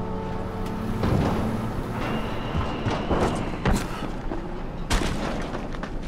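Heavy thumps land as someone drops from a height.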